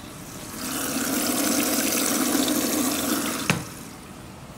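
Water rushes into a washing machine's detergent drawer.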